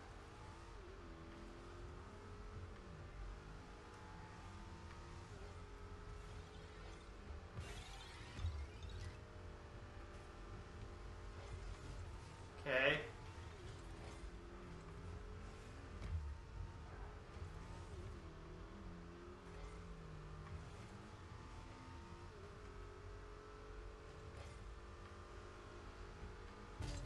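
A car engine hums and revs steadily throughout.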